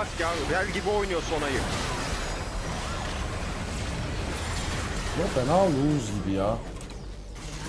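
A young man exclaims with animation through a headset microphone.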